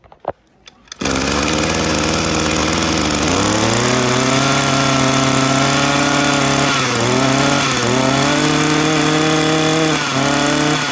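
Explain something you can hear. A small two-stroke engine starts and runs loudly close by, its revs rising and dipping.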